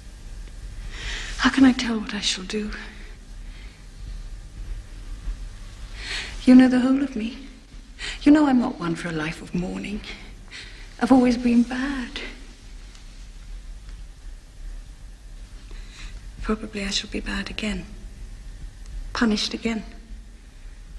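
A young woman speaks softly and closely, in short phrases with pauses.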